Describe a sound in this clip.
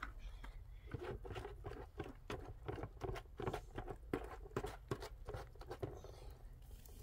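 A man scrapes plaster in a metal basin.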